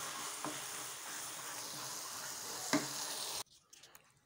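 A spoon scrapes against a frying pan.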